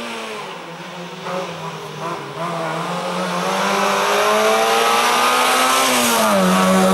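A small car engine revs hard and rises in pitch as the car approaches.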